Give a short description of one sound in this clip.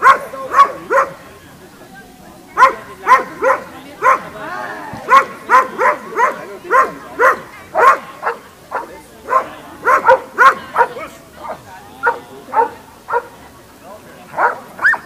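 A dog barks excitedly outdoors.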